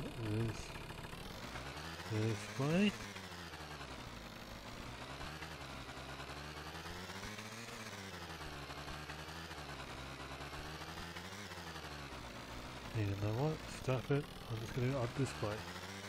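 A scooter engine hums steadily, rising and falling in pitch as it speeds up and slows down.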